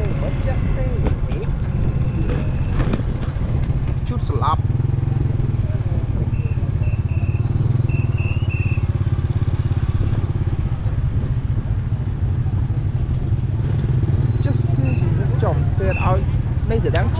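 Motorbikes buzz past close by in traffic.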